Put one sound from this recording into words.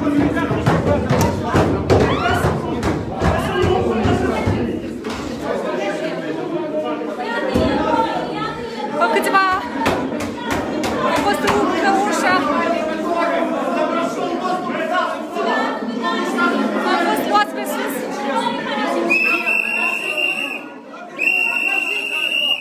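A crowd of men shout and argue loudly at close range.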